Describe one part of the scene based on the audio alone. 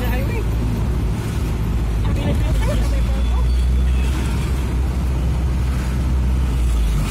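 Wind rushes against the vehicle.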